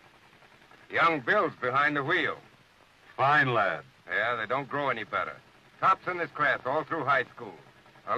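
A man talks calmly at close range.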